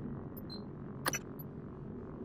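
A short electronic click sounds as a menu selection changes.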